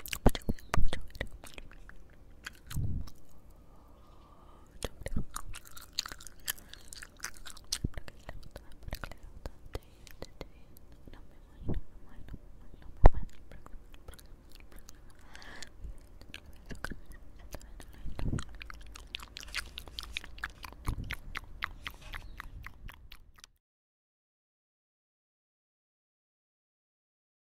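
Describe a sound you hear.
A person whispers softly right into a microphone.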